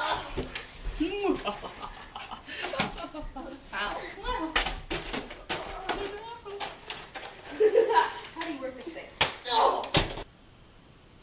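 Young people shout and laugh excitedly close by.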